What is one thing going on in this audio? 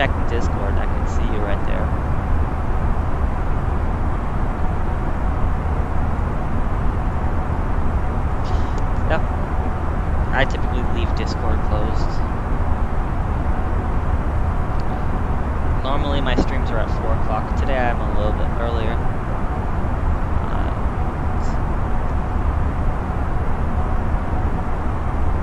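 A jet airliner's engines hum steadily and evenly.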